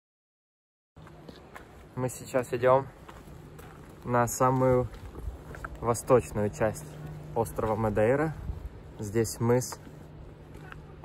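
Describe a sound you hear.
A young man talks calmly and close up.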